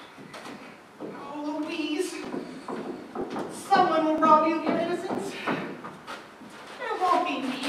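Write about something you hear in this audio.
A young woman sings, heard from across a large hall.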